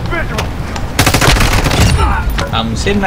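An automatic rifle fires rapid bursts.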